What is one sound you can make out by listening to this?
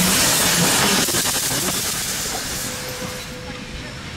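Steam hisses loudly from a passing steam locomotive.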